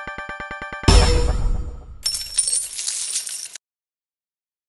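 Coins jingle and clink in quick bursts.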